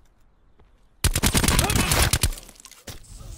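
A rifle fires a rapid burst of shots up close.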